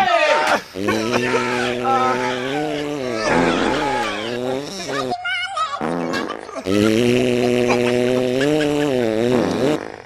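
A young man wails loudly in long, drawn-out cries close by.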